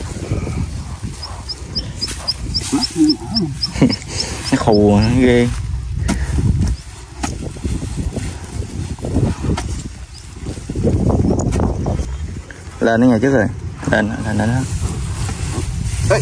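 A metal blade digs and scrapes into damp soil.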